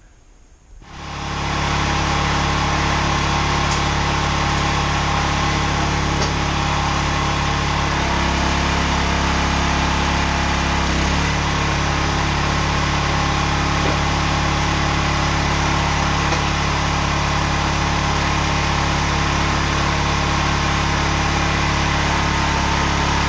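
A small petrol engine runs loudly and steadily.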